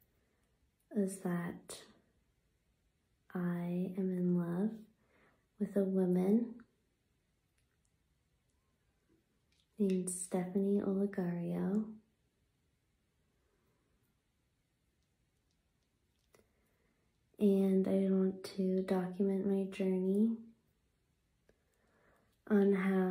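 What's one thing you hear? A young woman talks calmly and cheerfully close to a phone microphone, with pauses.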